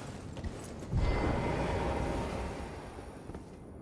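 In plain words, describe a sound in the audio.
A heavy stone lift rumbles as it moves.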